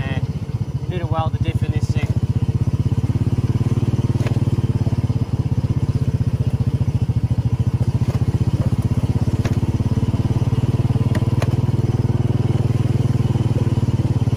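A small engine chugs steadily and loudly close by.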